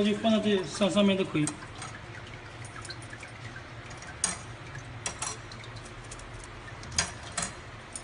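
Metal wire hangers clink lightly against metal rods.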